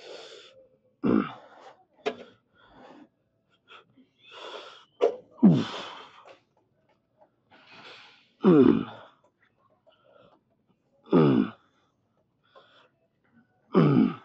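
A weight machine clanks and creaks with each repetition.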